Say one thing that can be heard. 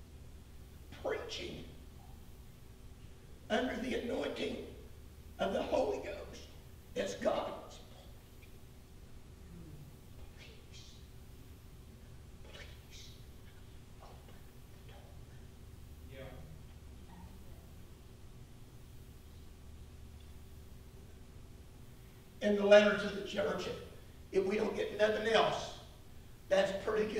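A man speaks with animation through a microphone, pausing often.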